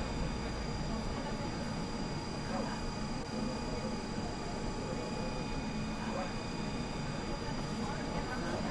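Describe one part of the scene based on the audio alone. A tram's motor and equipment hum steadily while standing still.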